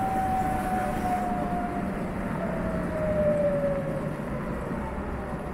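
A motorcycle's motor whines and falls in pitch as the motorcycle slows down.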